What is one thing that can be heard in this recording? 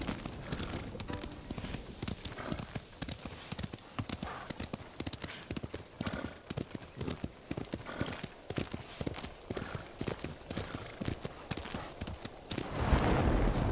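A horse gallops with quick, rhythmic hoofbeats on soft ground.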